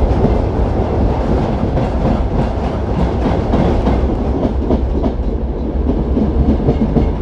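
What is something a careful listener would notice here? A train rumbles steadily along the tracks, with wheels clacking over rail joints.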